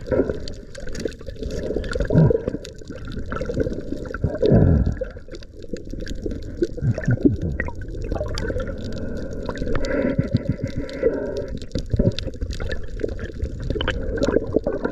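Water sloshes and splashes near the surface, heard muffled underwater.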